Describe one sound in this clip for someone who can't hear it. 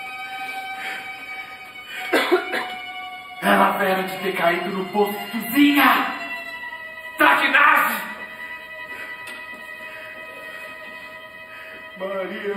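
Instruments play long, held notes.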